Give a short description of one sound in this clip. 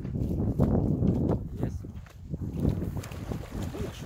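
Water splashes as something hits the lake surface.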